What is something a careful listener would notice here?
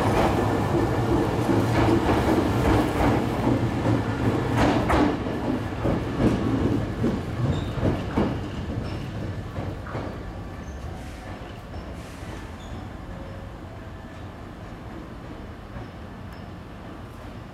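An electric commuter train pulls away and fades into the distance.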